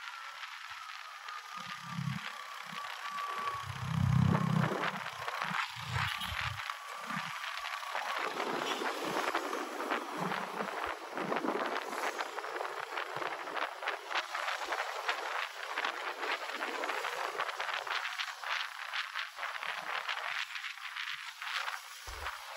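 Wind rushes and buffets past a moving motorcycle.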